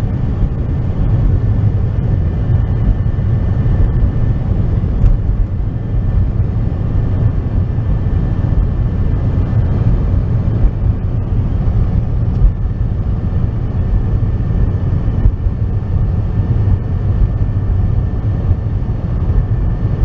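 A car engine rumbles steadily from inside the car as it drives along.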